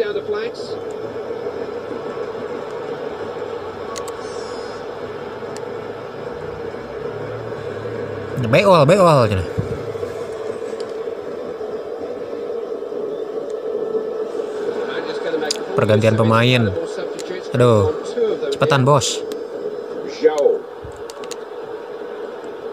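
A stadium crowd roars steadily through a television speaker.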